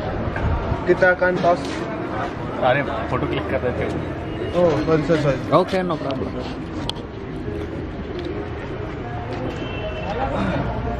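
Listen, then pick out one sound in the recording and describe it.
Young men talk with each other nearby.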